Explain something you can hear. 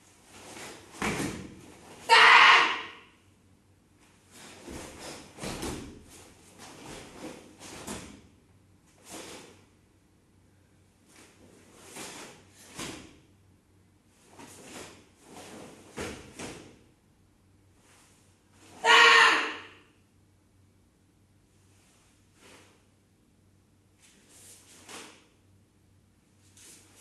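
A martial arts uniform snaps with quick strikes and kicks.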